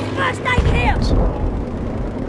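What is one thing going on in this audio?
A gun fires with a loud close blast.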